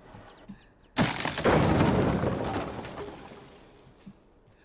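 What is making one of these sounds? A heavy box crashes onto a hard floor with a loud thud that rings and fades.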